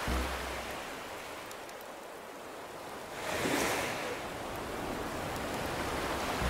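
Gentle waves wash onto a shore, swelling and ebbing.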